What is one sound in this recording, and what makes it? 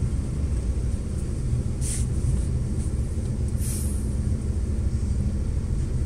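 A car engine idles with a low rumble close by.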